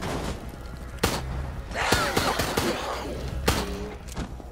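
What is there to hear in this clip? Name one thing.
Heavy blows land with sharp thuds.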